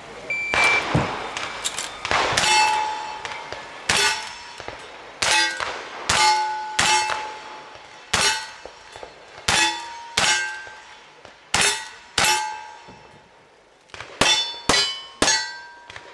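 Gunshots fire one after another outdoors, each sharp crack followed by the ring of metal targets.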